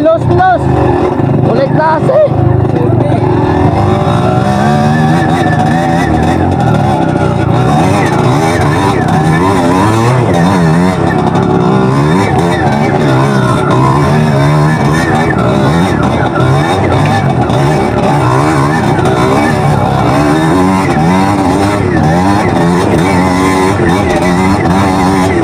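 A dirt bike engine hums and revs close by.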